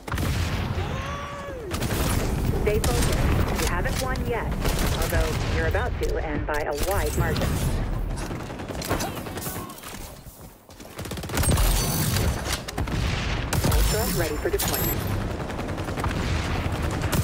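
A man talks through a microphone.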